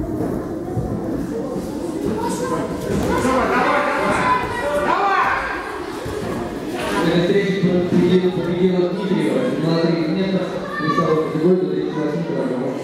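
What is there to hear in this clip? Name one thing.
People talk and call out in a large echoing hall.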